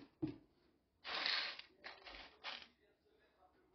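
A hand stirs coffee beans with a dry rustle.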